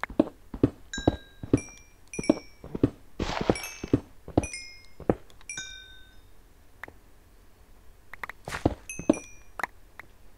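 Small chunks of stone pop out with short, high pings.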